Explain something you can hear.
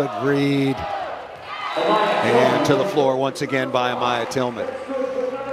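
A volleyball is struck hard during a rally.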